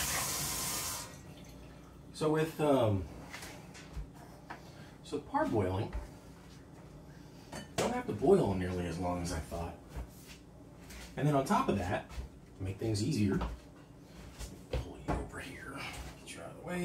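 Dishes clink and clatter in a sink.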